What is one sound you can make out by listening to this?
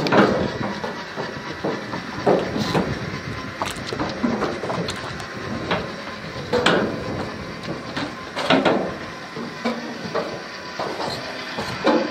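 Footsteps thud on a boat's deck.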